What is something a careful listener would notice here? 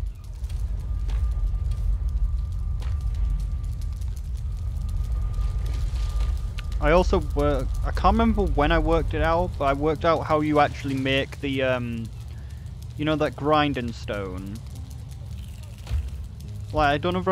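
A fire roars low and steady.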